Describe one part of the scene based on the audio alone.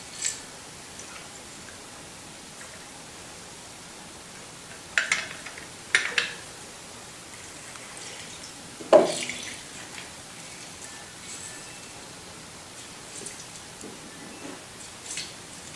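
A lime squeezer clicks and squishes.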